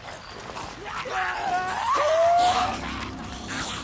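Creatures screech and howl nearby.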